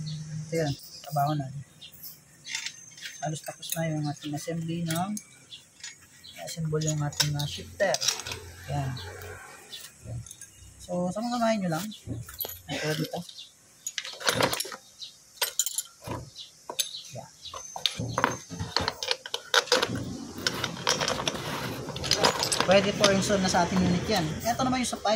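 Metal parts clink and knock together.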